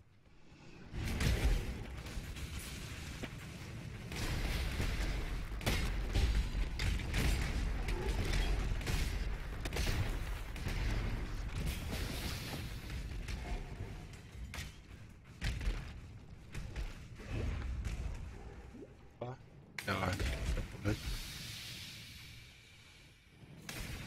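Fiery spells burst and explode in quick succession.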